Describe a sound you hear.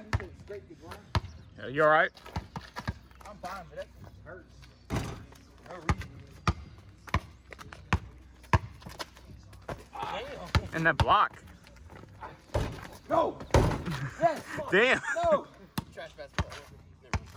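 A basketball bounces sharply on asphalt.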